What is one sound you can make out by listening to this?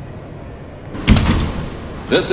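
Subway train doors slide open with a thud.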